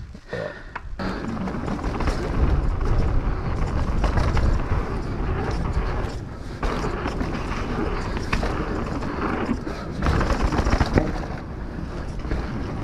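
Bike tyres rumble and crunch over a dirt trail.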